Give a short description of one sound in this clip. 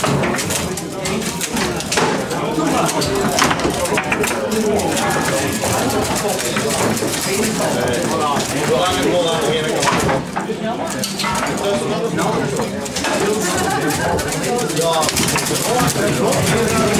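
Foosball rods rattle and thump as they are spun and slid.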